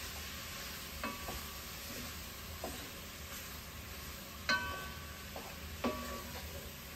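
A spoon clinks and scrapes against a metal pot.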